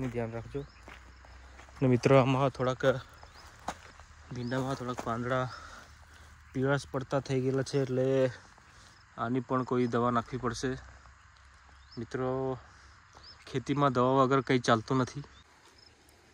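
A young man speaks calmly and close by, in bursts with pauses.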